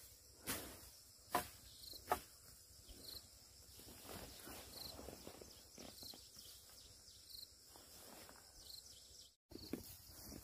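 Leafy plants rustle as they are pulled by hand.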